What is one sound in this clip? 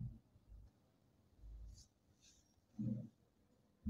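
A pen taps and scrapes against a board.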